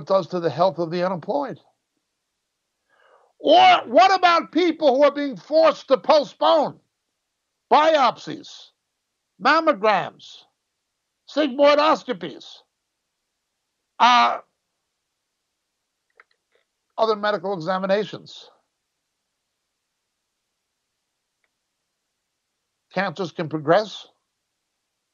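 A middle-aged man talks steadily into a close microphone, in short bursts with pauses.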